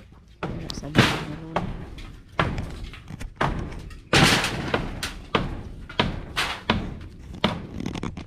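Sharp knocks ring out on wood at an uneven pace.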